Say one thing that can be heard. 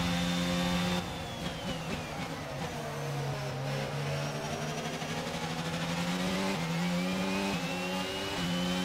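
A racing car engine drops sharply in pitch as the car brakes hard, then climbs again.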